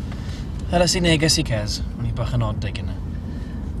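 A man asks a question in a calm voice, close by.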